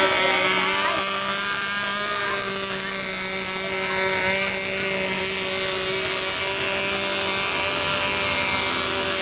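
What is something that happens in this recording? A small electric boat motor whines steadily.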